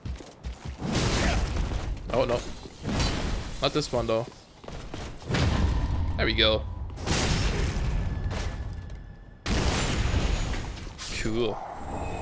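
Swords clash and slash with heavy metallic blows.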